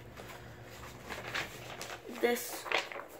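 Paper rustles in a hand.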